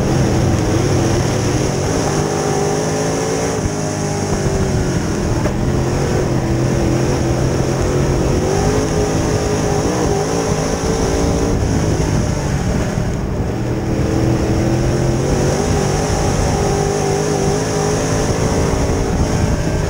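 A race car engine roars loudly up close, rising and falling as it revs.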